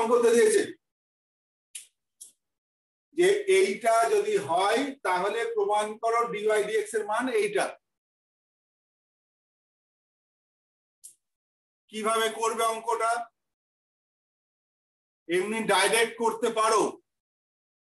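A young man explains calmly in short bursts with pauses, close by.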